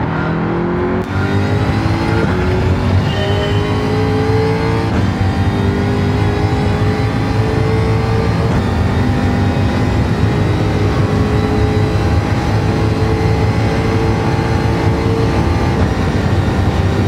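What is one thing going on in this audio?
Gears shift with a quick drop in engine pitch.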